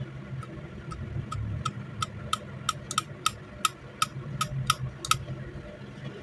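Metal parts of a pistol click as they are worked by hand.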